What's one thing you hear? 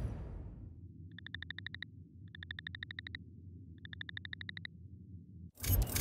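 Soft electronic clicks tick quickly in short bursts.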